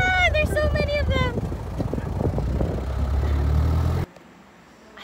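A vehicle engine rumbles while driving over a rough track.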